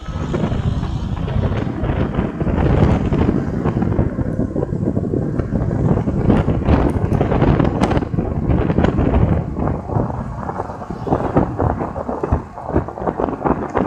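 Wind buffets and rumbles loudly, as if rushing past on a moving vehicle.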